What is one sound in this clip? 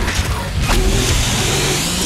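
A creature growls and screams.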